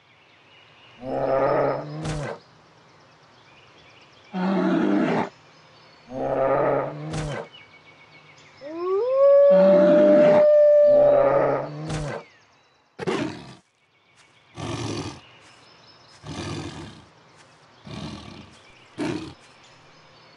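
Animal creatures growl and roar in short, loud bursts.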